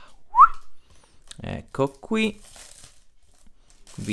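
Thin plastic wrapping crinkles.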